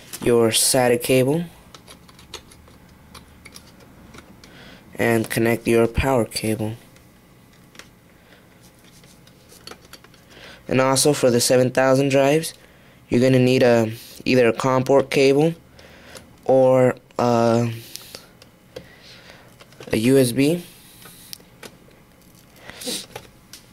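A cable plug clicks and scrapes into a small connector.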